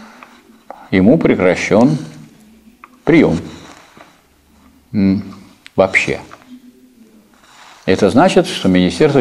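A middle-aged man speaks calmly in bursts in a room with a slight echo.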